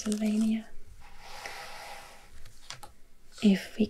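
A hand slides over a paper page, rustling softly.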